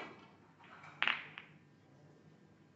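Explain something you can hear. Snooker balls clack together as the pack of reds breaks apart.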